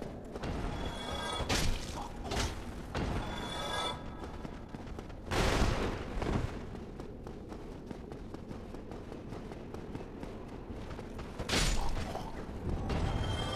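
Armoured footsteps clank quickly on stone.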